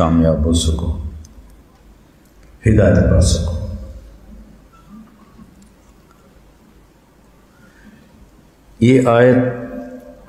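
An elderly man speaks slowly and solemnly into a microphone, with long pauses.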